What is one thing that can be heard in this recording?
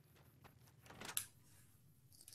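A door opens with a short knock and creak.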